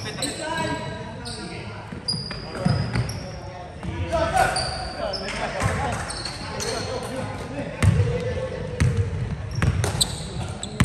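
Basketball shoes squeak on a hardwood court in a large echoing hall.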